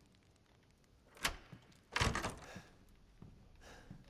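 A heavy wooden door unlocks and swings open.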